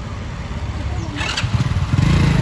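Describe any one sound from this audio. A man kick-starts a motorcycle with a sharp clunk.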